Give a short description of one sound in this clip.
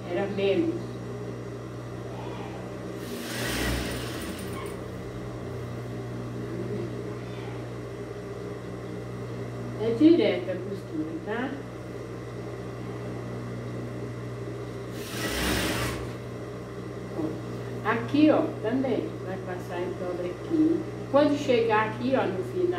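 A sewing machine motor hums steadily.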